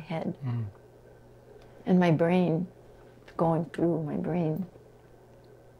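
A woman speaks calmly and thoughtfully, close to a microphone.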